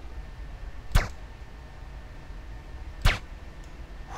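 A pistol fires single sharp shots.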